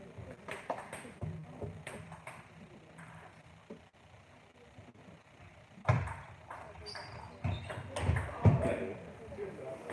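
A table tennis ball clicks back and forth off paddles and the table in an echoing hall.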